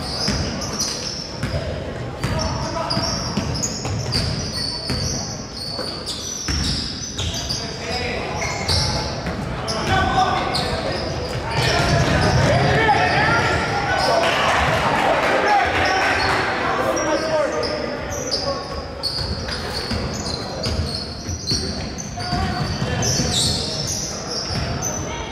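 Spectators cheer and chatter in an echoing gym.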